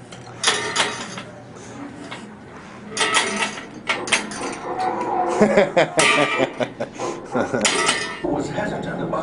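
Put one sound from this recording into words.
An old coin-operated machine clatters and whirs.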